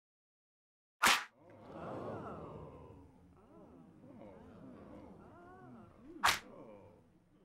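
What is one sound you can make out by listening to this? A loud slap smacks sharply.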